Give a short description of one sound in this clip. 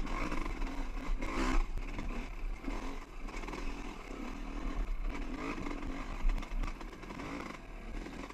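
A dirt bike engine revs and putters close by.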